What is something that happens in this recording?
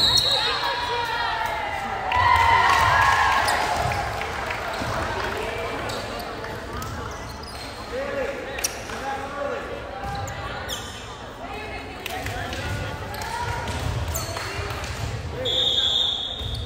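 A crowd in a large echoing gym cheers and chatters.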